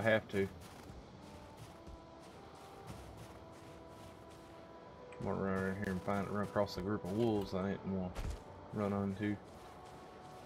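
A middle-aged man speaks casually into a close microphone.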